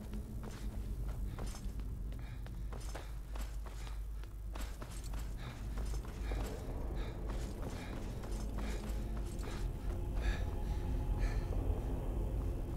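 Footsteps tread steadily on a stone floor.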